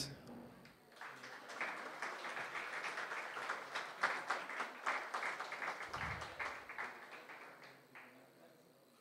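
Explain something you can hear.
A small crowd applauds.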